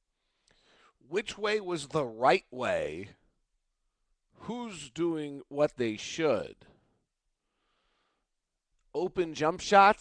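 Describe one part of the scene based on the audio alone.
A man talks with animation into a close headset microphone, in short bursts with pauses.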